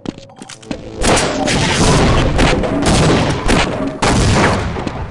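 A loud blast roars and rumbles.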